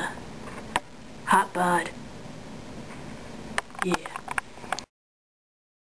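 A plastic toy figure clacks as it is handled.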